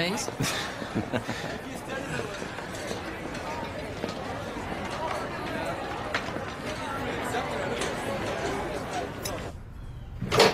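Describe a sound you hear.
Many young people chatter in a busy, echoing hall.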